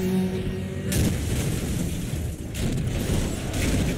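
Cars crash together with a loud metallic smash.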